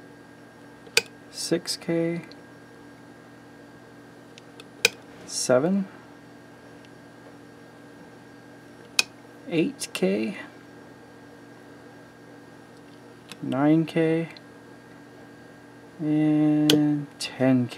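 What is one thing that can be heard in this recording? A rotary switch clicks sharply.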